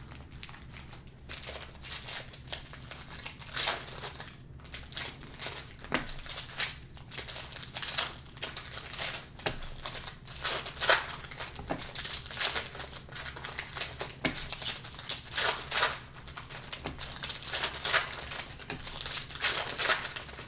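Stiff cards flick and shuffle against each other.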